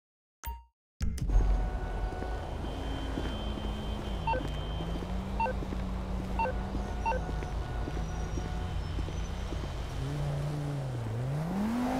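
A car engine hums as it drives past nearby.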